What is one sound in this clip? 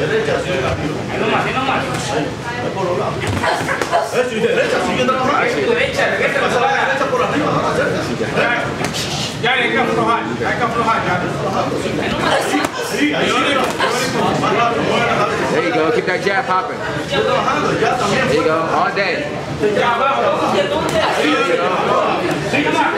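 A crowd of men talks and calls out.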